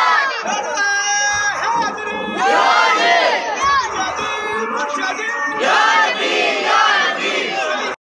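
A large crowd of men chants loudly outdoors.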